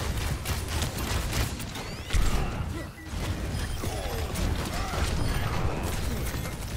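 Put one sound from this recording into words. Bow shots twang and arrows strike in quick succession during a video game fight.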